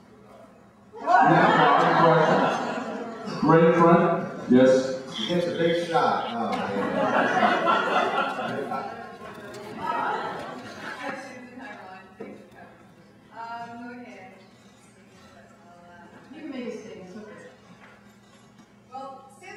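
Men speak with animation through microphones in a large echoing hall.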